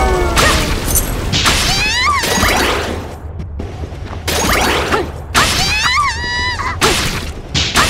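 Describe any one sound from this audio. A magic blast roars and crackles.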